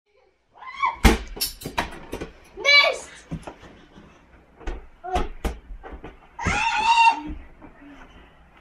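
Children thump and bounce on a bed.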